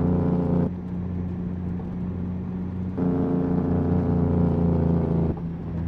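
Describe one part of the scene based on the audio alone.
A truck's diesel engine drones steadily, growing louder at times.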